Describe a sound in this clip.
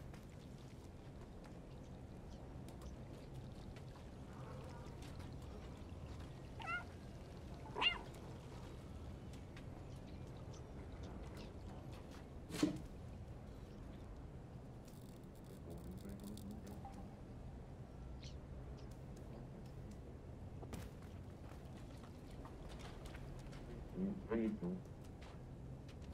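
A cat's paws patter softly on a wooden floor.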